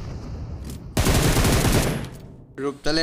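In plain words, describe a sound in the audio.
Gunfire rattles in a quick burst.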